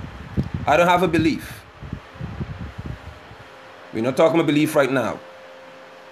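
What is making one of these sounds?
A man speaks calmly close to a phone microphone, in short bursts.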